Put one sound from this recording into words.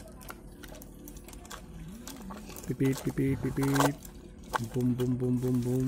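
A small plastic toy digger scrapes and scoops through loose dirt close by.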